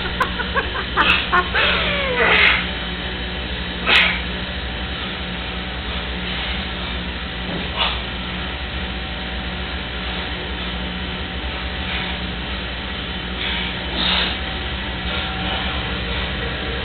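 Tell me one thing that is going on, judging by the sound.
Bodies thump and scuff on a hard floor.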